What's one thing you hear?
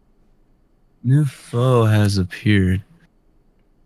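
A young man speaks briefly and with animation into a microphone, close up.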